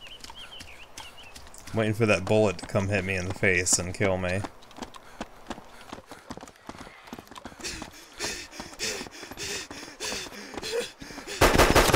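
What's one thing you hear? Footsteps run quickly over a hard road.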